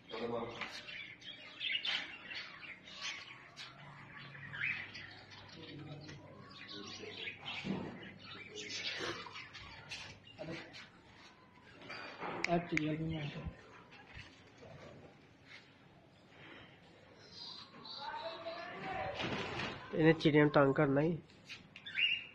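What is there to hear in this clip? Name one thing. A man talks nearby in a casual voice.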